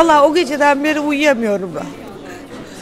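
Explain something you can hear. An elderly woman speaks emotionally close to a microphone.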